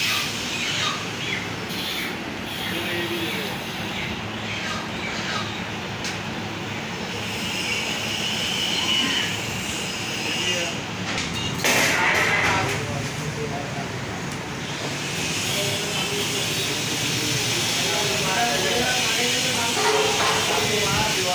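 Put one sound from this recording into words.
A knife slices through raw meat with soft, wet cutting sounds.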